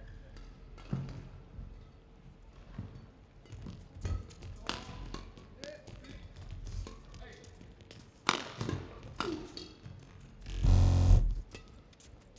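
Rackets strike a shuttlecock back and forth in sharp cracks.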